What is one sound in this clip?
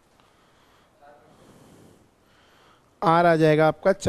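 A young man speaks calmly into a close microphone.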